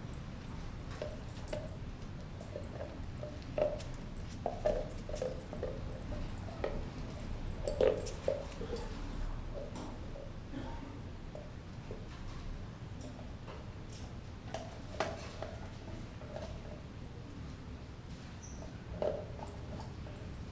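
A dog chews and gnaws noisily on a bone close by.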